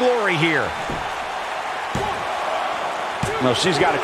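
A hand slaps a wrestling mat.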